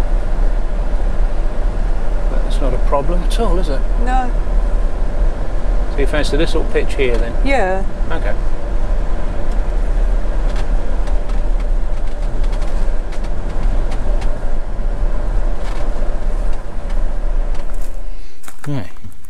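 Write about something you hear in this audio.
A vehicle engine hums steadily as it drives slowly.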